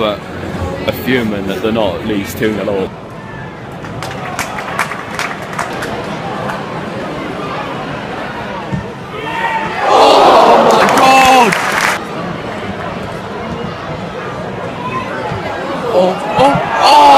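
A large stadium crowd murmurs and chants.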